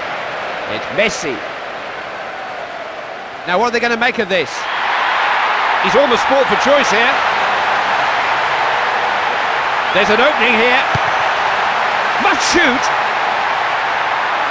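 A stadium crowd roars steadily, growing louder partway through.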